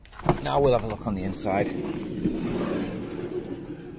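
A van's sliding door rolls open.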